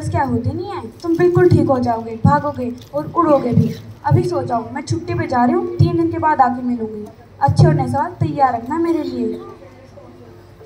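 A young girl speaks with expression into a microphone over loudspeakers.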